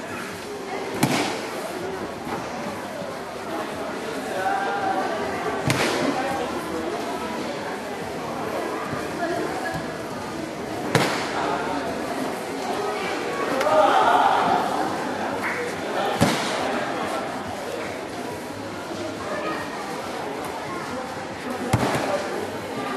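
Bodies slap hard onto a padded mat now and then.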